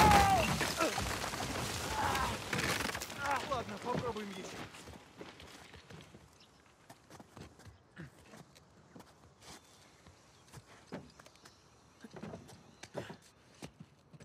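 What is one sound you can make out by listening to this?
Hands grip and knock against wooden beams while climbing.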